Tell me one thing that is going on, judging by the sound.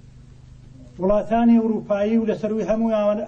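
A middle-aged man speaks firmly into microphones.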